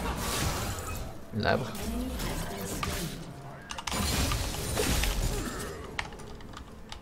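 Clashing game combat effects and spell bursts ring out.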